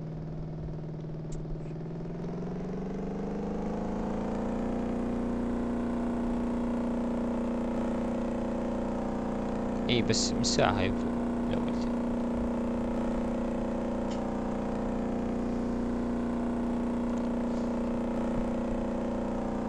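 A boat engine drones steadily, rising in pitch as it speeds up and then holding steady.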